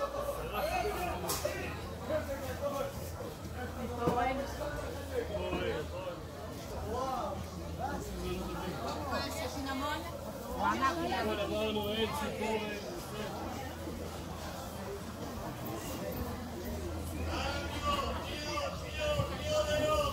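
Several women talk and chatter close by.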